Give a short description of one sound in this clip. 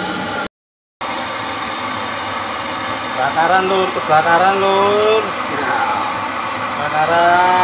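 A gas burner roars steadily under a metal pan.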